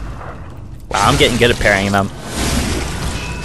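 A blade slashes into flesh with a wet splatter.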